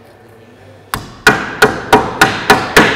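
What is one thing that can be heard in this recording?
A wooden mallet strikes sheet metal held in a vise with rapid, ringing knocks.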